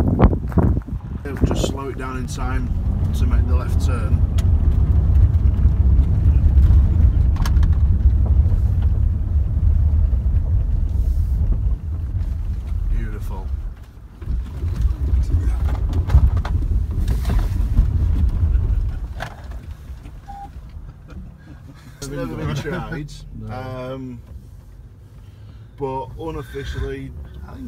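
A man talks calmly from close by inside the car.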